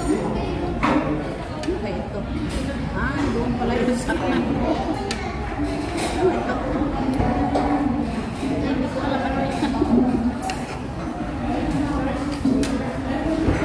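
Metal cutlery clinks against a plate and a glass bowl.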